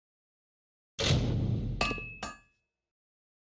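A metallic forging clang rings out briefly.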